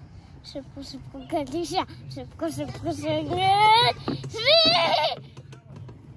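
A little girl talks and giggles close by.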